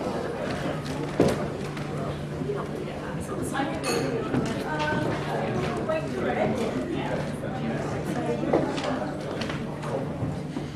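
A small crowd of men and women murmur and chat quietly nearby.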